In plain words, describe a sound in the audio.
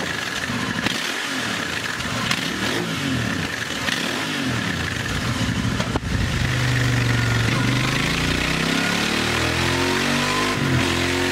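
A motorcycle engine revs up and down repeatedly, then holds a loud steady roar that climbs in pitch.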